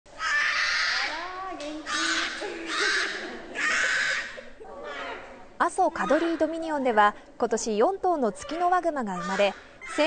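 Bear cubs bawl and whine loudly.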